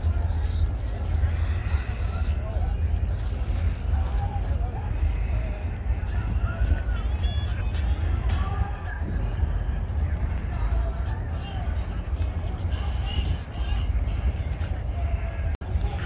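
A crowd chatters in the distance outdoors.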